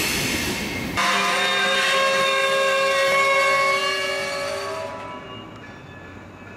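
Train wheels squeal high and steady against the rails, then fade.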